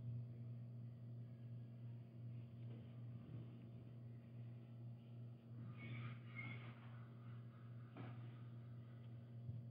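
Thread rustles softly as it is pulled through taut fabric.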